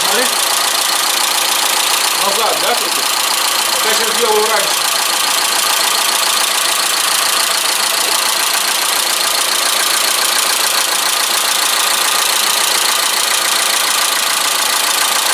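A car engine idles with a steady, rattling clatter.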